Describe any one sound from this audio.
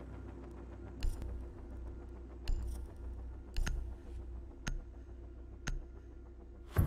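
Interface clicks sound as menu options are selected.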